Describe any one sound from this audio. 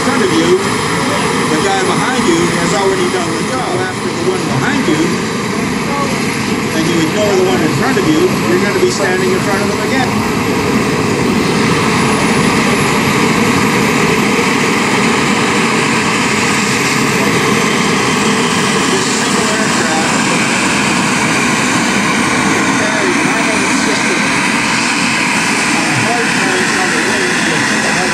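A model jet engine whines and roars steadily close by.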